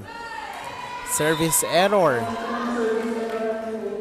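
A volleyball is struck hard during a rally.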